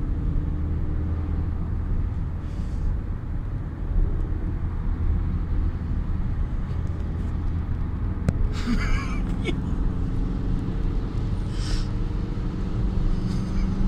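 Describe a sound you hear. A car engine hums steadily from inside the cabin as it drives along a highway.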